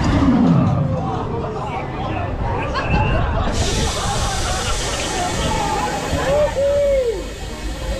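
Riders scream as a drop tower ride falls.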